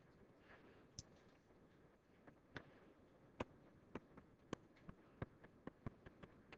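A stylus taps and scratches softly on a hard surface.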